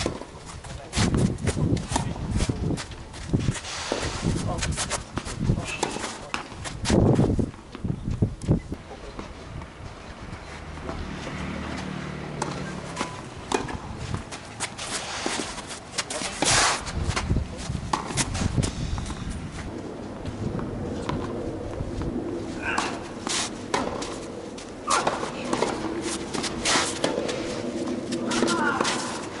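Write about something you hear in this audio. A tennis ball is struck with a racket, back and forth.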